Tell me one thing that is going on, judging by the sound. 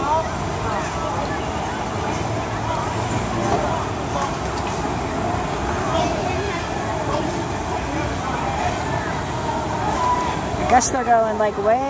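A crowd murmurs and chatters outdoors in the distance.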